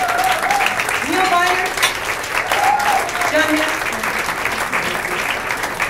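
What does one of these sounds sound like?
A woman sings a jazz tune into a microphone.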